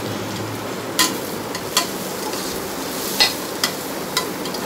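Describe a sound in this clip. A metal ladle clinks and scrapes against a metal pot.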